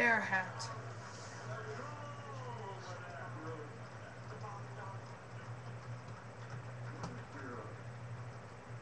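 A teenage boy speaks quietly and casually close to a microphone.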